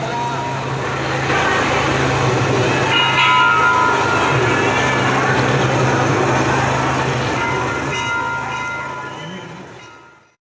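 A helicopter drones overhead.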